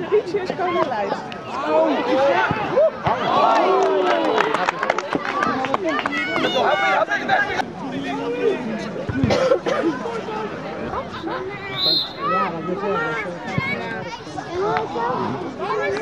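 A crowd of spectators talks and calls out close by, outdoors.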